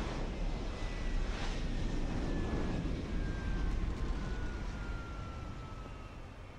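An aircraft engine hums and whines low nearby, then fades.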